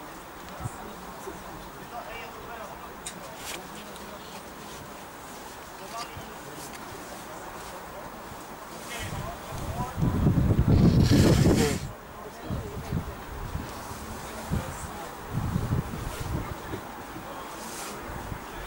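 Players shout to each other far off across an open field.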